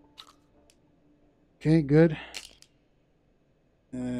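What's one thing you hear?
Small metal shells clink and rattle as they fall.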